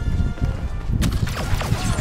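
Laser blasters fire in quick bursts.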